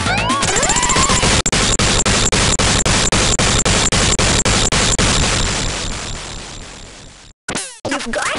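Rapid bursts of game explosions boom and crackle, then fade away.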